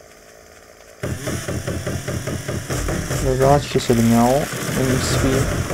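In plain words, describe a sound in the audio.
A chainsaw roars as it cuts into a tree trunk.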